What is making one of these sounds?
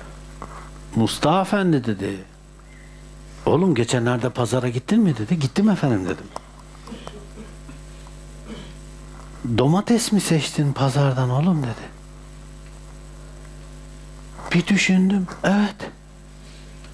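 An elderly man speaks calmly and slowly, in short phrases with pauses, close by.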